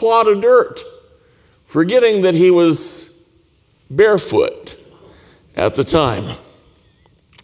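An older man speaks with animation into a microphone in an echoing room.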